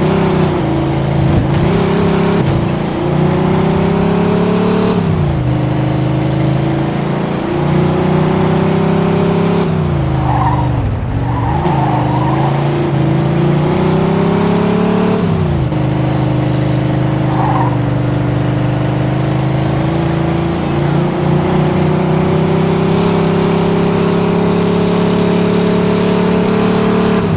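A car engine hums steadily and revs up and down as gears shift.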